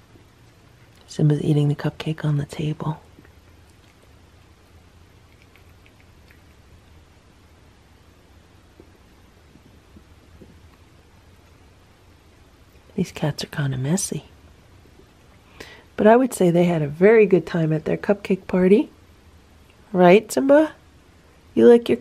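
A cat chews food softly.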